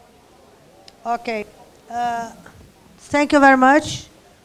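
A woman speaks clearly into a microphone, heard through a loudspeaker in a large room.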